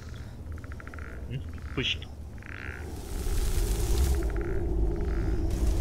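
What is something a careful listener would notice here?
A magic spell hums and crackles steadily.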